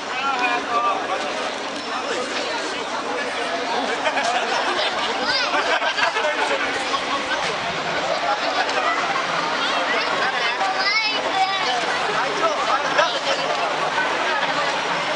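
A crowd of men and women talks and calls out all around.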